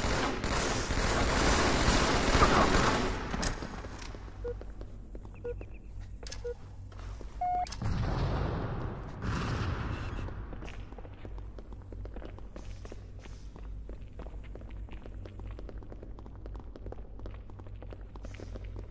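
Video game gunfire crackles in quick bursts.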